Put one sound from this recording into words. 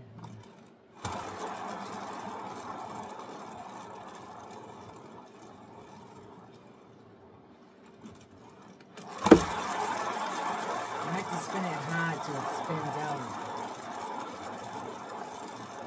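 A spinning turntable whirs loudly, slowing and then speeding up again.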